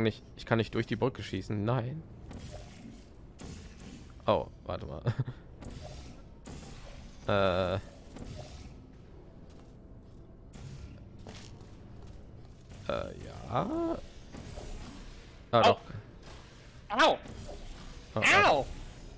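A futuristic gun fires with short warbling zaps.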